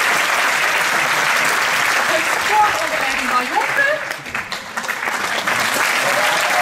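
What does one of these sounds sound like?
A large crowd applauds in a large hall.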